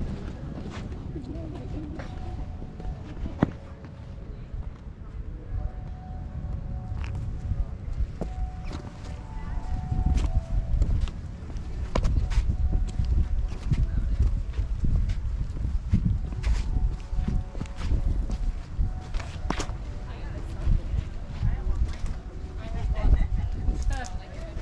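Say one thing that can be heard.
Footsteps thud and knock on wooden planks.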